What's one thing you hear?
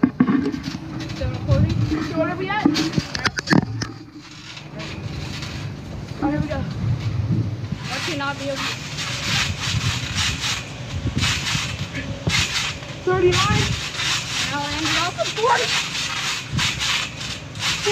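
A trampoline mat creaks and thumps as children bounce.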